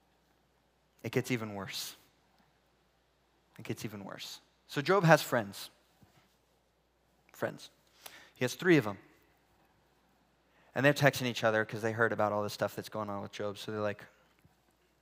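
A man speaks calmly into a headset microphone, with pauses.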